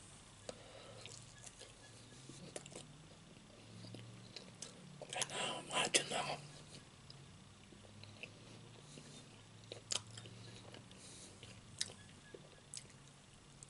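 A man chews food close by.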